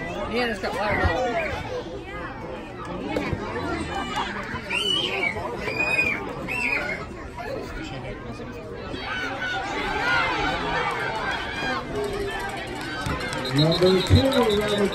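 A crowd of spectators cheers and shouts outdoors at a distance.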